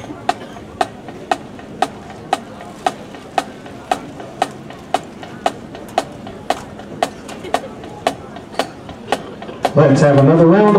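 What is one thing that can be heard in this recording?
A drum taps a steady marching beat.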